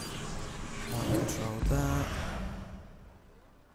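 Card game sound effects whoosh and chime as a card is played.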